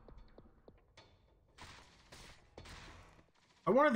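Explosions burst and crackle.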